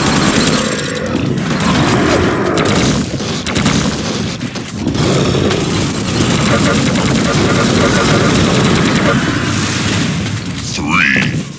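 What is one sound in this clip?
Guns fire rapidly with loud bursts and explosions.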